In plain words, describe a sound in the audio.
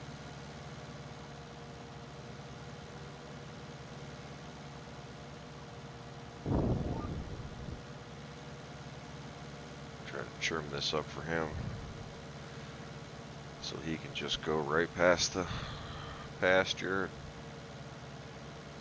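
A tractor engine hums steadily at low revs.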